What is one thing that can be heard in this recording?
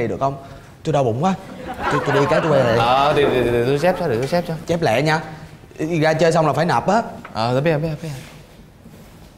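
Young men talk with animation, close by.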